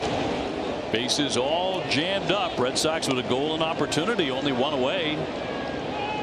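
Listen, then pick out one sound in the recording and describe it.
A crowd cheers and whistles loudly.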